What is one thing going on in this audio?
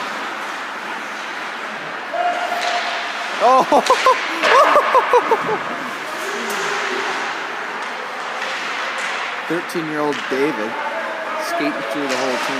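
Skates scrape across ice in a large echoing hall.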